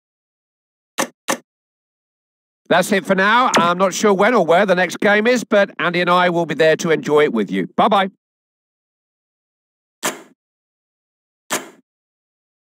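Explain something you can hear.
Menu selection sounds click briefly.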